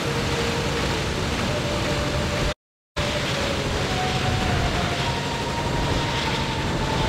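Wind roars steadily past.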